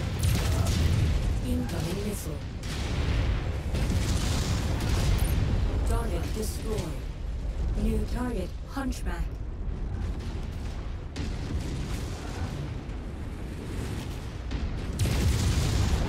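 Laser weapons fire with a buzzing hum.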